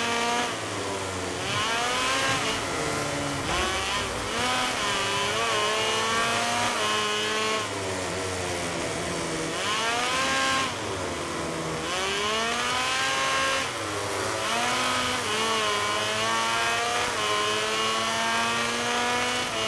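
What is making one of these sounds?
Motorcycle engines whine loudly, rising and falling in pitch as they shift gears and brake.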